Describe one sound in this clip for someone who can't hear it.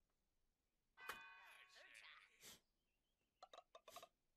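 Short electronic game sounds chime and blip.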